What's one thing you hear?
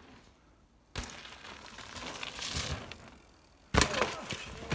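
Bicycle tyres thud along a wooden ramp.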